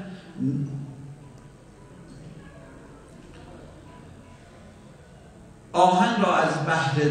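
A middle-aged man recites with feeling into a microphone, heard through a loudspeaker.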